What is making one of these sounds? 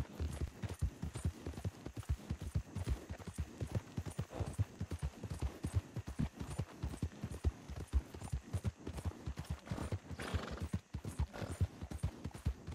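Horse hooves thud rapidly on a dirt path at a gallop.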